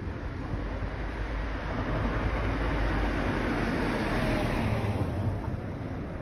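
A car drives past on an asphalt street.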